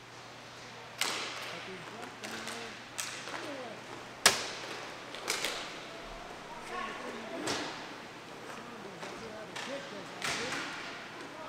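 Hockey sticks clack sharply against a ball and the floor in a large echoing hall.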